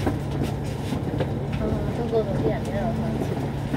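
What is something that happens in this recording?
A bus passes close by.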